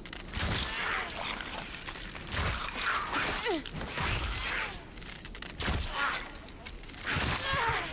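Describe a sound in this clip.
A beast snarls and growls close by.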